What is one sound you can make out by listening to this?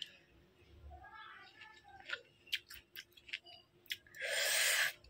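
A young woman smacks her lips as she eats.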